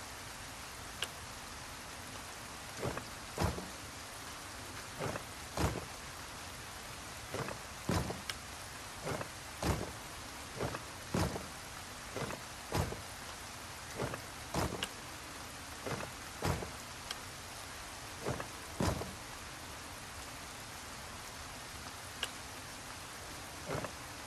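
Heavy tiles clunk and scrape as they turn, again and again.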